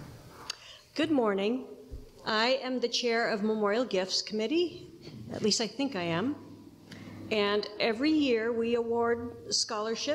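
An older woman speaks calmly into a microphone in a large echoing room.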